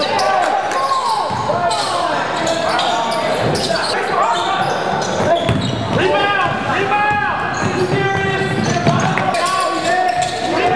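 Sneakers squeak sharply on a hard court floor, echoing in a large gym.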